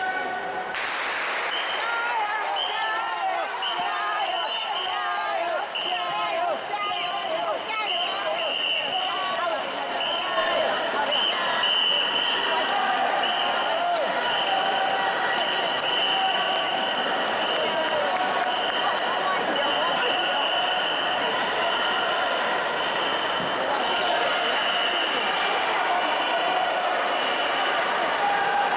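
A group of young people chants in time with their paddle strokes.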